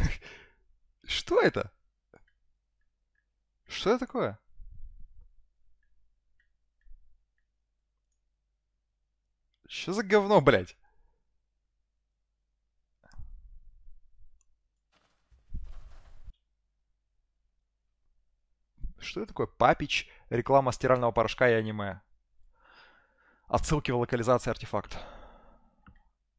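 A man talks into a microphone in short bursts, with animation.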